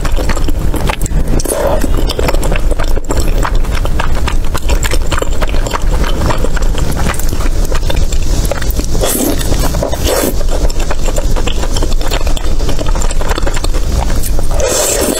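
A woman chews soft, sticky food wetly and close to a microphone.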